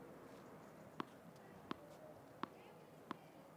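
A tennis ball bounces on a hard court a few times.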